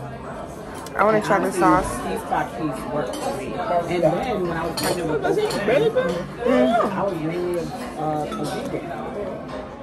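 A young woman talks with animation close to the microphone.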